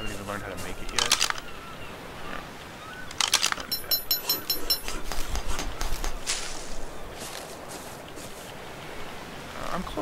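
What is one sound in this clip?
Leaves rustle as plants are picked by hand.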